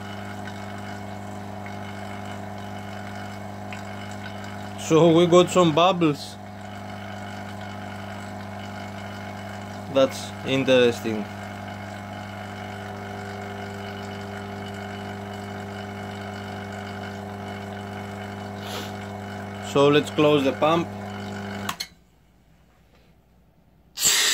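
Foam fizzes and bubbles inside a container.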